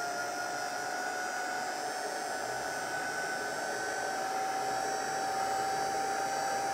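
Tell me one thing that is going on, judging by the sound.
A heat embossing tool whirs as it blows hot air.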